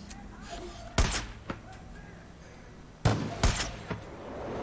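A rifle fires sharp, loud shots that echo briefly.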